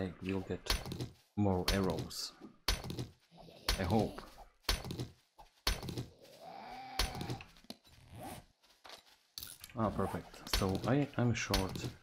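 A stone axe strikes rock with sharp knocks.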